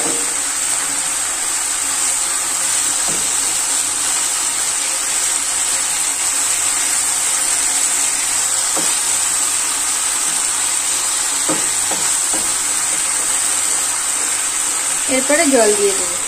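Oil sizzles steadily in a frying pan.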